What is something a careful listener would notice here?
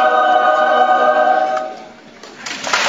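A youth choir sings a held chord in a large hall, then falls silent.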